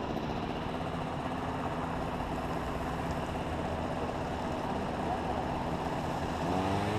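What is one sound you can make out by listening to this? A motorcycle engine hums steadily close by, rising in pitch at the end.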